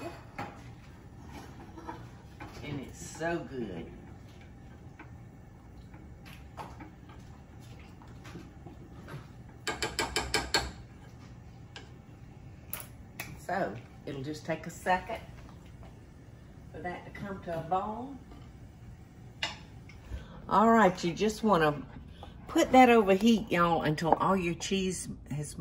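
A wooden spoon stirs and scrapes in a saucepan.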